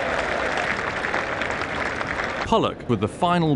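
A stadium crowd cheers and murmurs loudly.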